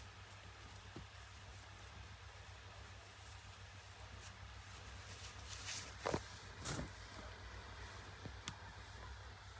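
Fabric rustles and swishes as it is spread out and unfolded.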